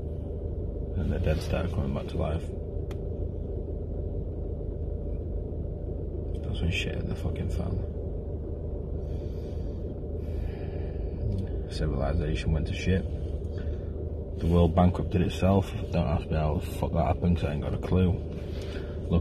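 A young man speaks calmly and close by, in short bursts with pauses.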